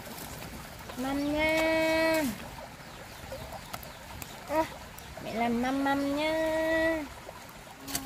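A young child calls out nearby in long, drawn-out cries.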